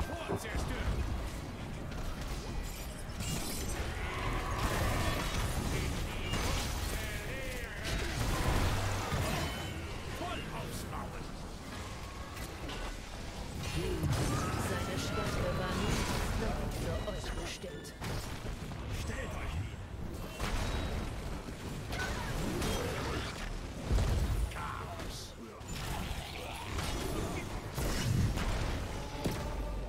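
Spells, blasts and blows from a game's battle crackle and thud without a break.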